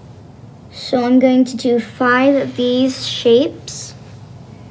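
A young girl speaks brightly close by.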